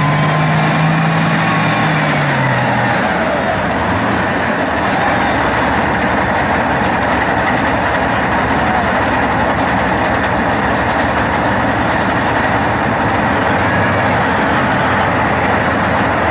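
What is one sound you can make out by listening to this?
A tank engine roars loudly and steadily nearby.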